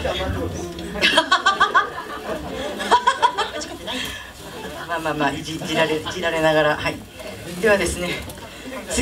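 A band plays drums and guitars.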